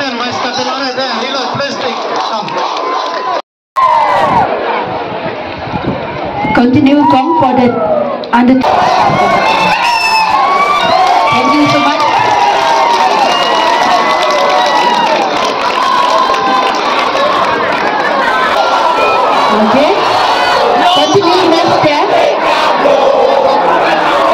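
A large crowd of children chatters and shouts outdoors.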